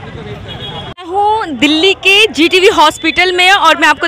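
A young woman speaks clearly and with animation into a microphone, close by.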